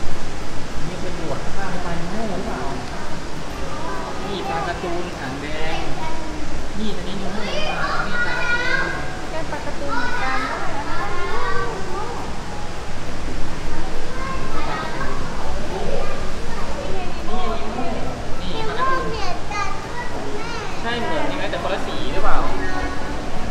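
A young child chatters nearby.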